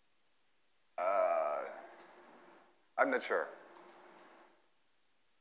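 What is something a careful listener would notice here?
A man speaks to an audience in a large echoing hall.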